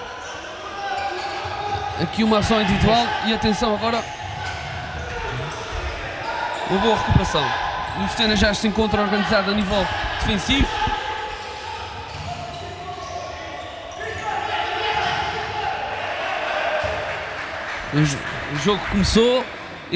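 A ball thuds as it is kicked across a hard floor in an echoing hall.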